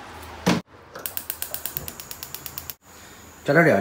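A gas stove igniter clicks rapidly.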